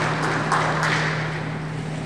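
Water splashes as a diver surfaces in a large echoing pool hall.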